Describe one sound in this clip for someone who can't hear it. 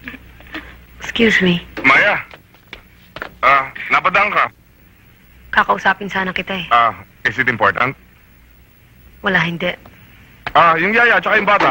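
A woman speaks in a tense voice close by.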